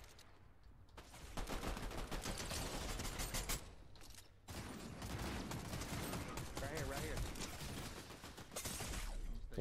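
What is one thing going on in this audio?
Rapid gunfire bursts from a game.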